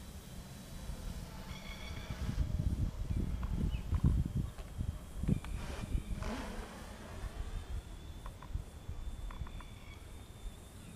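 Wind gusts outdoors.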